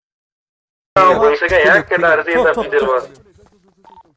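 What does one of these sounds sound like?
A young man speaks quickly and with animation through a headset microphone.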